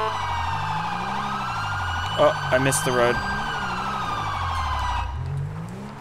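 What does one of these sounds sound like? A police siren wails loudly.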